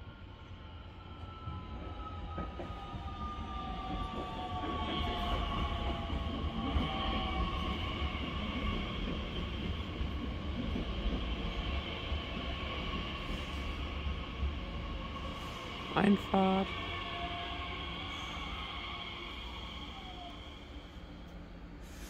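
A train rumbles into the station and slows down.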